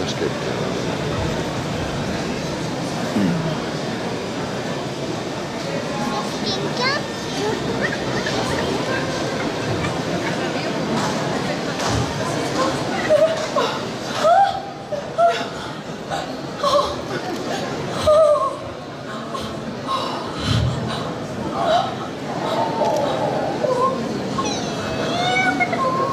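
Young women speak and laugh with animation through loudspeakers in a large hall.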